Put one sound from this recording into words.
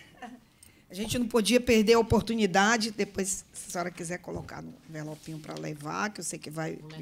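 A woman speaks through a microphone.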